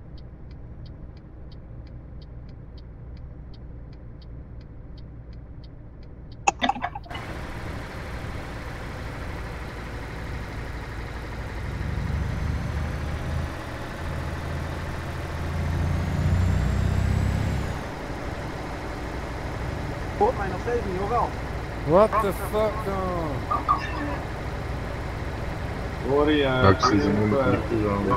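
A truck engine rumbles steadily, growing louder for a while before settling.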